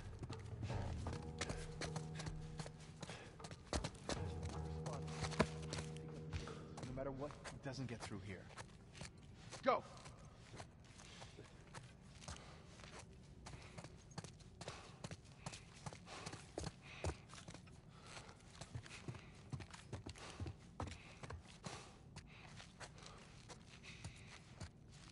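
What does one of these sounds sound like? Footsteps patter softly on a hard floor.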